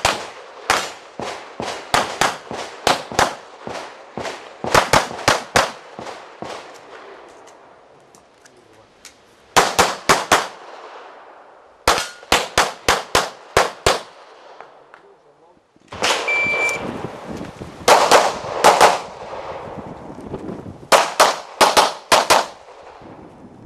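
Pistol shots ring out in rapid bursts outdoors, with a short echo after each.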